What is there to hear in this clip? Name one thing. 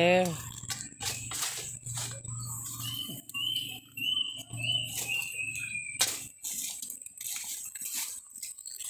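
Dry leaves and twigs rustle and crackle close by.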